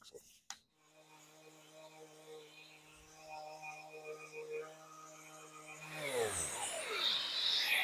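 An electric sander whirs steadily, then winds down.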